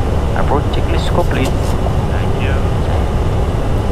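A young man speaks calmly through a headset microphone.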